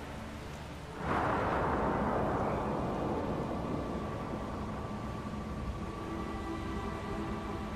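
A magical shimmering whoosh bursts out suddenly and slowly fades.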